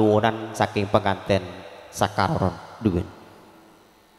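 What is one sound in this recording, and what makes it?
A man speaks loudly and with animation, then falls quiet.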